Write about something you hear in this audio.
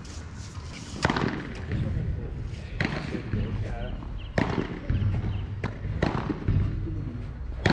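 Padel rackets hit a ball with sharp pops outdoors.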